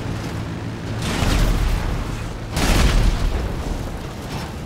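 An explosion booms and crackles with sparks.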